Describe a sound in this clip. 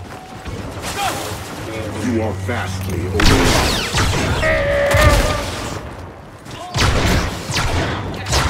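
Blaster guns fire in rapid bursts.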